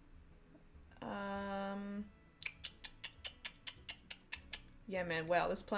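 A young woman makes long drawn-out vocal sounds close to a microphone.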